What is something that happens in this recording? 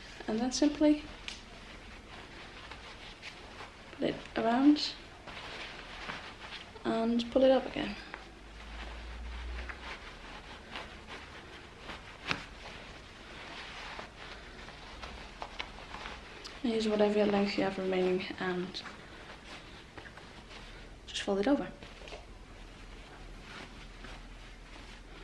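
Fabric rustles softly as a sash is folded and tied.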